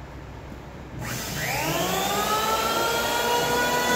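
An electric power tool starts up with a rising whine and runs loudly.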